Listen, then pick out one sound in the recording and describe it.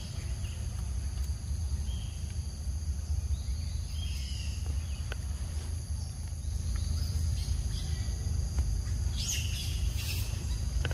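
A monkey chews and munches on a banana.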